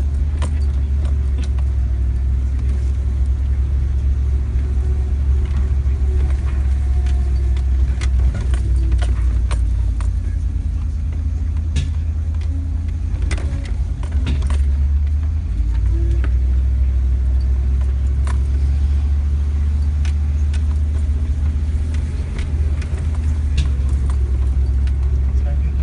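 A vehicle engine rumbles steadily while driving slowly.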